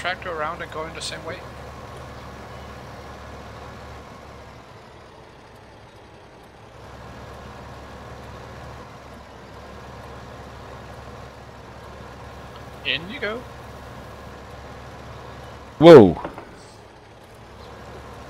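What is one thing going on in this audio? A tractor engine hums steadily as it drives.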